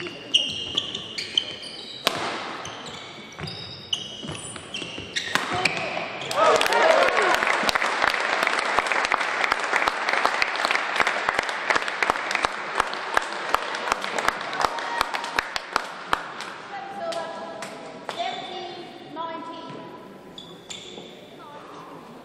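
Sports shoes squeak on a hard court.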